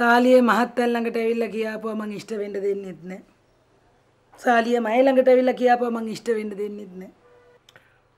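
A middle-aged woman speaks urgently and with emotion, close by.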